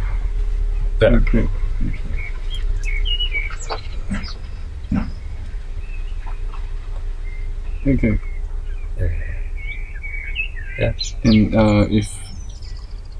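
A second man talks briefly in reply.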